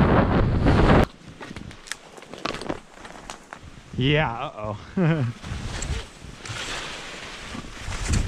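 Pine branches brush and swish against the skier.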